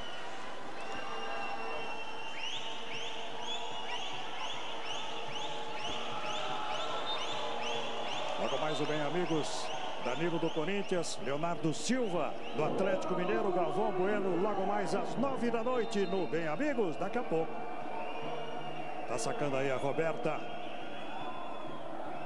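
A crowd cheers and chants in a large echoing hall.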